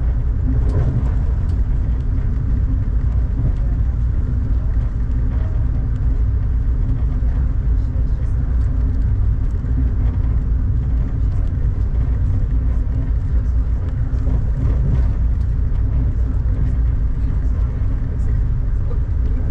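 Raindrops patter against a window.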